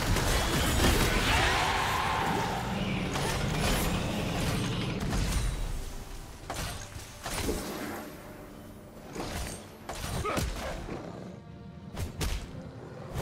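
Sharp hits and blasts snap again and again.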